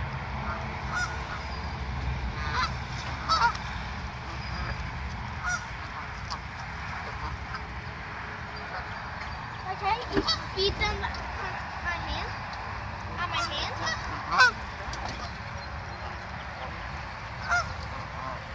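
Geese honk now and then.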